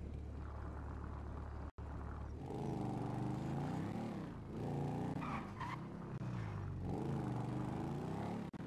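A motorcycle engine hums and revs up and down as the bike rides along.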